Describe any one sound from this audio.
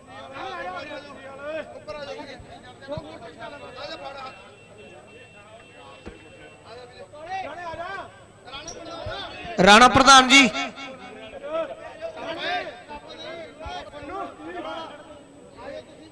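A man talks with animation over a loudspeaker.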